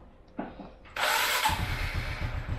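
A motorcycle starter whirs briefly.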